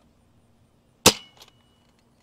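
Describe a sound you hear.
A toy blaster fires with a sharp snap.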